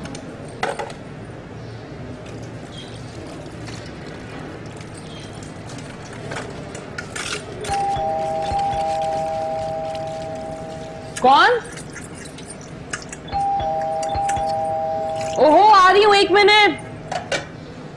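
Dishes clink in a sink.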